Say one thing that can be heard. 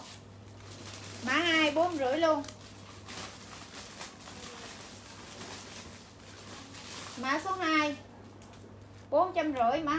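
Fabric rustles as clothes are pulled on and off.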